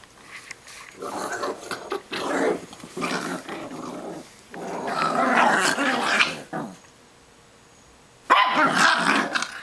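Small dogs growl and snarl as they play-fight close by.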